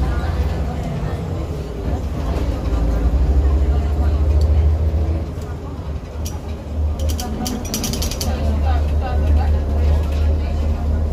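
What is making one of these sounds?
A diesel city bus engine drones as the bus drives, heard from inside.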